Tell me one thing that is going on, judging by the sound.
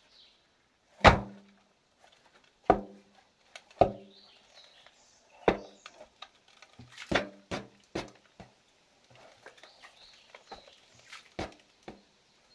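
A wooden post thuds heavily as it is pounded into the ground.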